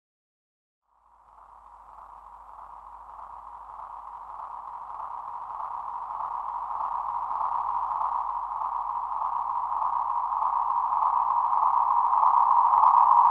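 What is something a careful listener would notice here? A synthesizer feedback loop drones with a steady tone that slowly swells louder.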